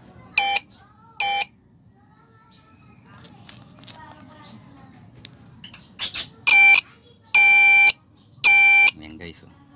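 Wires tap and scrape against a battery terminal.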